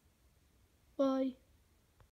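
A squeaky toy squeaks once when squeezed by hand.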